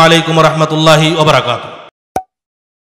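A man speaks with feeling into a microphone.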